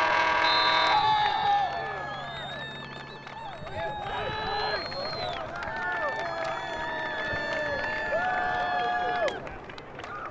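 Players shout to each other across an open outdoor field.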